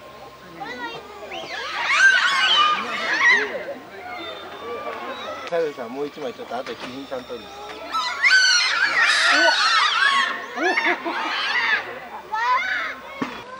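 Monkeys squeal and call in high, shrill bursts.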